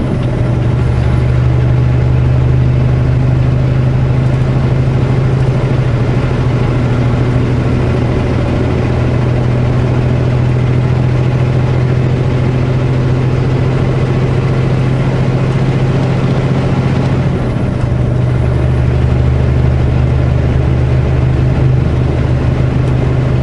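A vehicle's engine drones steadily while driving on a highway.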